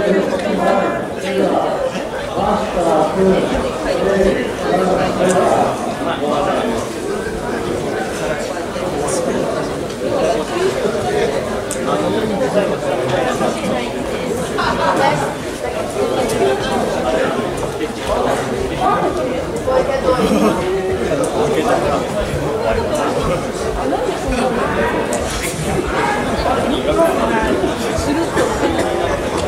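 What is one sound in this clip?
Many people talk and call out in a large echoing hall.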